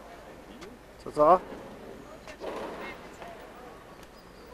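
A young girl talks close by, outdoors.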